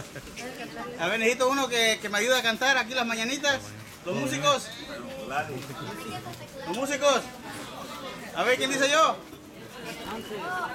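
A man speaks cheerfully and laughs close by.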